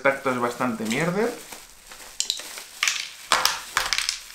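Bubble wrap crinkles as hands handle it.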